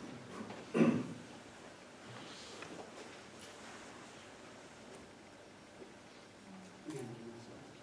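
A man speaks briefly in a large echoing hall.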